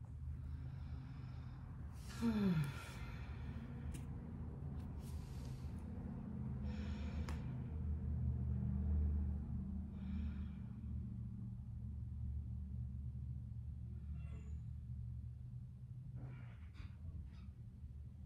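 A woman speaks softly and calmly, close by.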